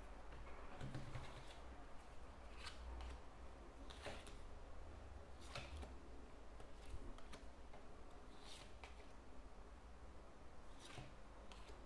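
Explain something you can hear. Cards slap softly down onto a table one by one.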